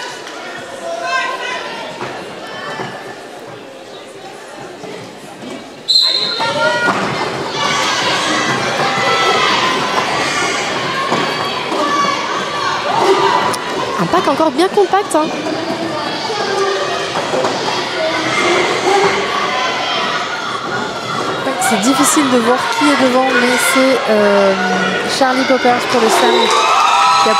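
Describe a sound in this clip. A crowd of spectators chatters and cheers in a large echoing hall.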